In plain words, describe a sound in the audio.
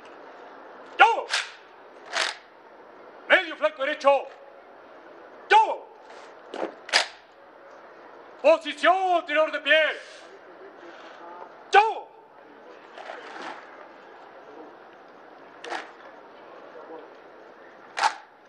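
A man shouts military commands loudly.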